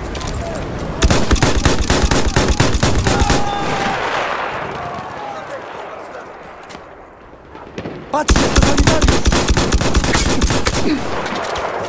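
A submachine gun fires rapid bursts up close.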